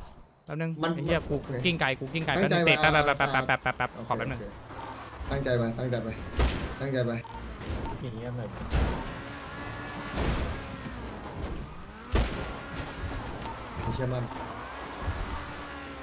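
A car engine revs hard as a car climbs a rough slope.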